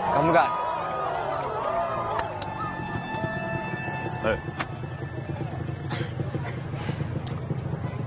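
A crowd murmurs and chatters in the background outdoors.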